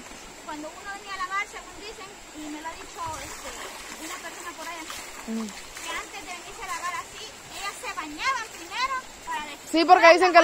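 Women talk and laugh close by.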